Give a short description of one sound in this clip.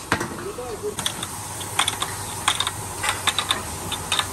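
A wrench rattles against a nut as a bolt is tightened.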